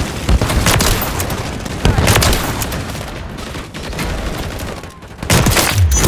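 Gunshots from a rifle crack in short bursts.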